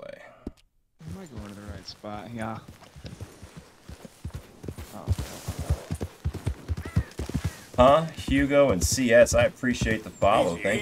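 A horse's hooves thud as it walks and trots over grass.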